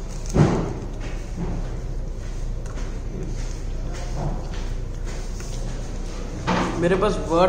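A young man chews and bites into crunchy food close by.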